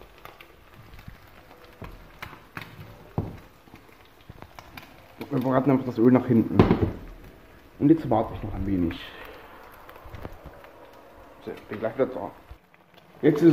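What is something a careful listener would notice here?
Eggs sizzle quietly in a frying pan.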